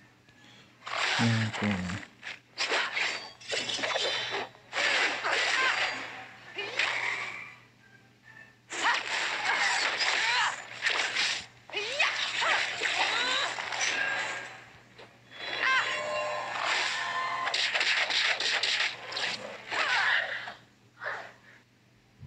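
Sword slashes whoosh and magic blasts crash in a fast fight.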